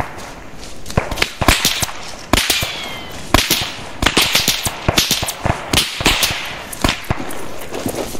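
Sharp gunshots crack repeatedly and echo outdoors.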